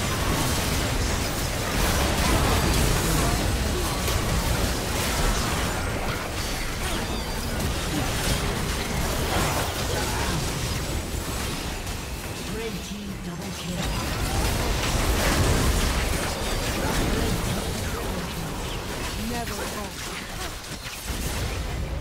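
Magic spell effects whoosh, crackle and burst in a busy fight.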